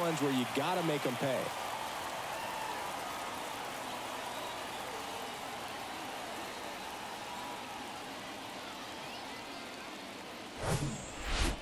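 A large crowd cheers and roars steadily, slowly fading.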